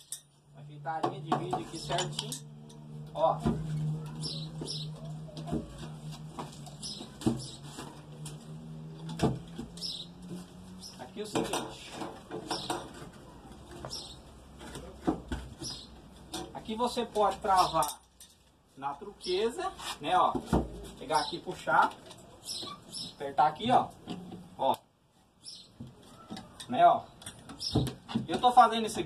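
Metal taps and scrapes against wood.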